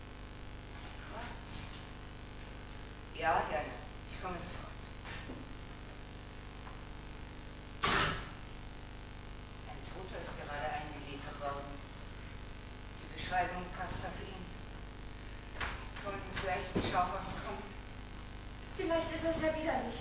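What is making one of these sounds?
A woman speaks with emotion, heard from a distance in a large hall.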